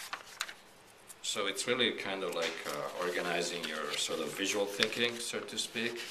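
Paper rustles and shifts as it is handled.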